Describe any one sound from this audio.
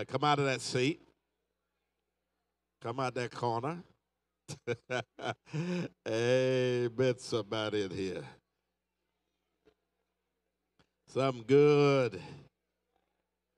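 A man preaches with animation through a microphone, pausing between phrases.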